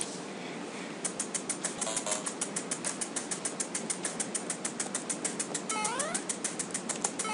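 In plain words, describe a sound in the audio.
Fast, steady ticking electronic game music plays.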